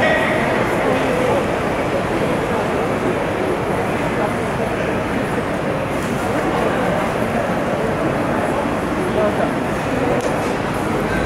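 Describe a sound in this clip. A crowd of spectators murmurs in a large echoing arena.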